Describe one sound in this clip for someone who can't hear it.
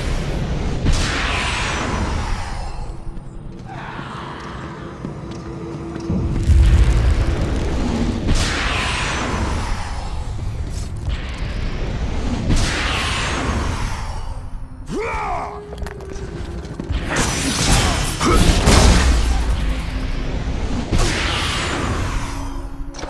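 Magical blasts burst with a loud rushing whoosh, again and again.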